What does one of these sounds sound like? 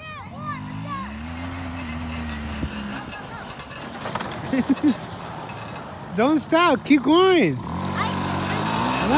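A small engine hums as a quad bike drives over dirt.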